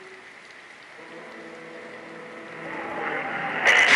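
A car engine chugs.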